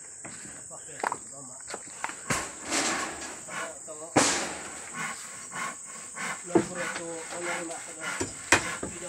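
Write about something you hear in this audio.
Wooden boards knock and clatter.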